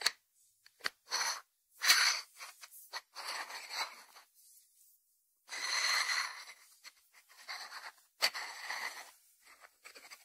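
Hands rub and scrape over a ceramic dish.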